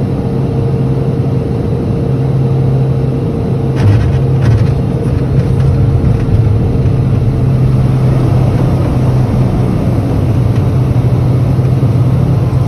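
A twin turboprop airliner drones while taxiing, heard from inside the cabin.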